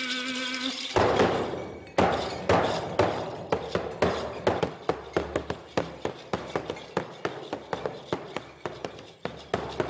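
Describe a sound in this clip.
A hand drum is beaten with a stick in a steady, quickening rhythm.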